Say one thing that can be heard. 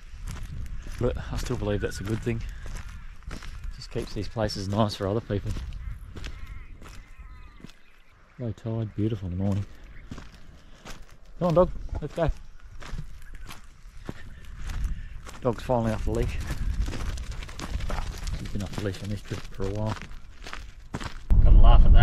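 A middle-aged man talks calmly and close up.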